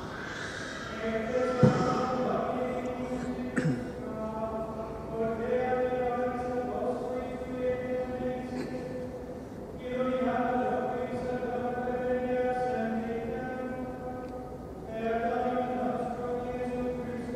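A man chants slowly in a steady voice, echoing in a large hall.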